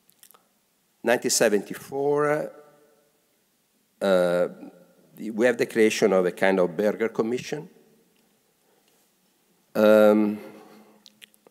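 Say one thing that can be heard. A man speaks calmly into a microphone in a large room, pausing between phrases.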